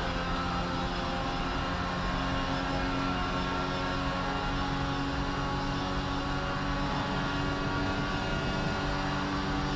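A racing car engine whines loudly at high revs.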